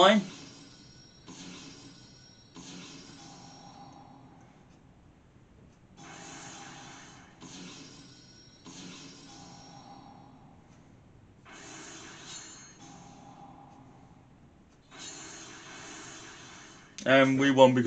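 Electronic game sound effects chime and whoosh from a computer speaker.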